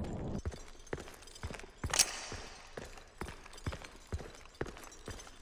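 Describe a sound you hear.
Footsteps crunch steadily on rough stone.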